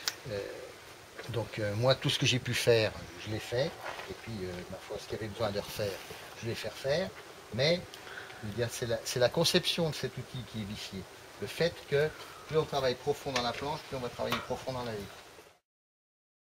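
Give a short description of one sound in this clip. An elderly man explains calmly outdoors, close by.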